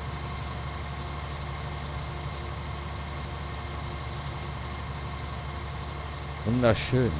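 A combine harvester engine hums steadily and low.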